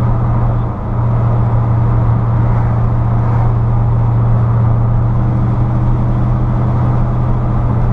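A V8 car engine drones while cruising, heard from inside the car.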